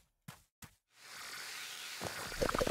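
Water trickles and rushes nearby.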